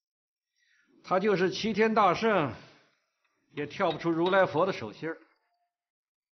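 A middle-aged man speaks sternly and calmly, close by.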